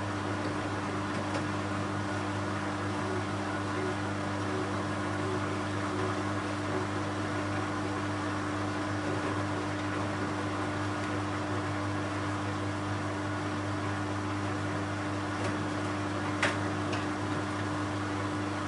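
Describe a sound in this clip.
Water sloshes inside a washing machine drum.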